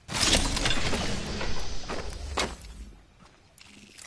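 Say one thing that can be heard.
A shield recharges with a rising electronic hum.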